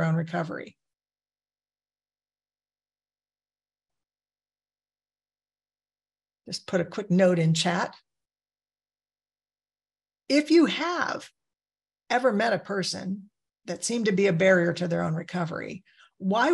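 A woman speaks calmly over an online call, with long pauses.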